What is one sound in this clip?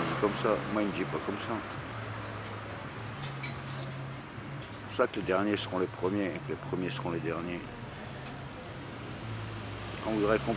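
An elderly man talks close to the microphone in a low, rough voice.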